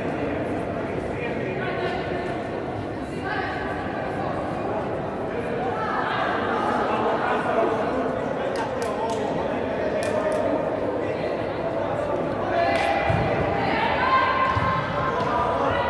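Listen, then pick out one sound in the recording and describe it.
Players' voices call out and echo in a large hall.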